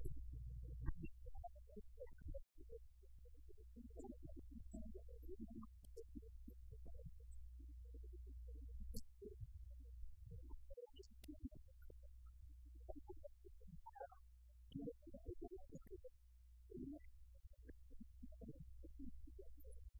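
A man speaks calmly at close range.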